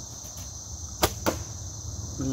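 A bowstring snaps sharply as an arrow is released.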